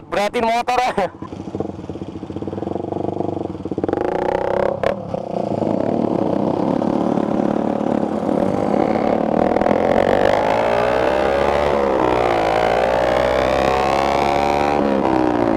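A motorcycle engine hums and revs up and down close by.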